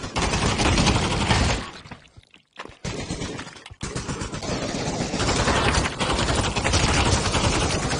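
A rifle fires rapid bursts of gunshots at close range.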